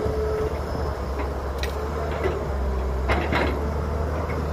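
Dirt and rocks pour into a metal truck bed with a rattling clatter.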